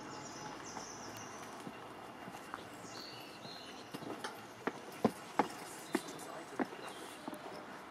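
Footsteps climb stone steps outdoors.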